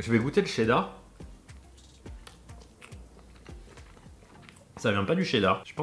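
A young man chews food with soft crunching.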